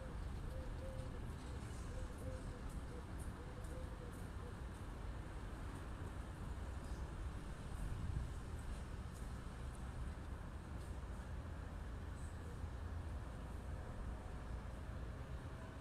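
Wind blows steadily outdoors, rumbling across the microphone.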